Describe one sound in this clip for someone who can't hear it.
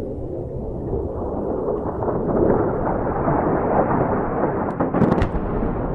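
A distant explosion booms and rumbles.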